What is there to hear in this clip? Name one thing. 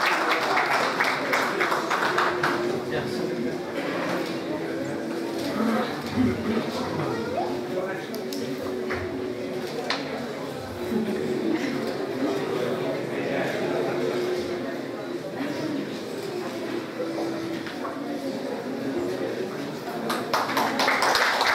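A string orchestra plays.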